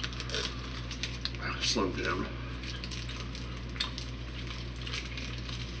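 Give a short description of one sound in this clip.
Paper crinkles and rustles in a man's hands.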